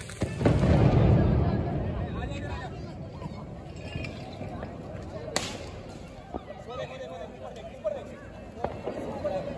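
Firework crackles and pops sound in the distance.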